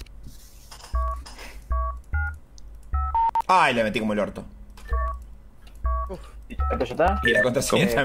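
Keypad buttons beep one after another as a code is entered.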